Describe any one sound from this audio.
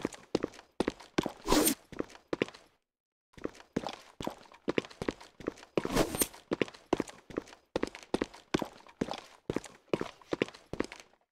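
Quick footsteps thud on a hard floor.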